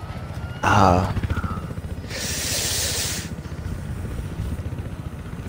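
A helicopter's rotor thumps steadily and rapidly.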